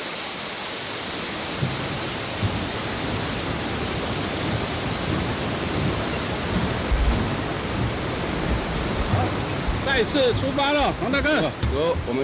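Footsteps thud on a metal footbridge.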